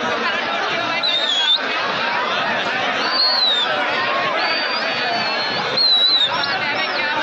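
Shrill whistles blow from the crowd.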